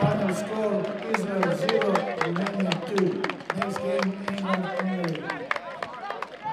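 A crowd in the stands chants loudly outdoors.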